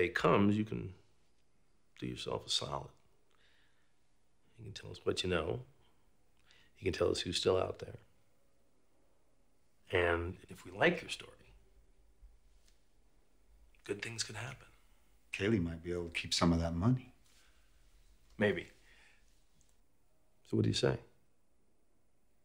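An older man speaks in a low, calm voice nearby.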